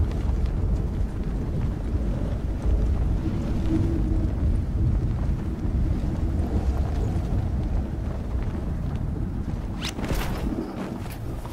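Wind roars loudly during a fast freefall.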